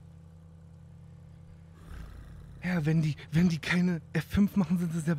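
A sports car engine idles with a low, steady hum.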